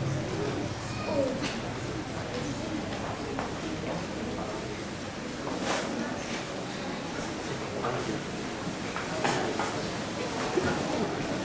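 A group of children chatter and murmur softly nearby.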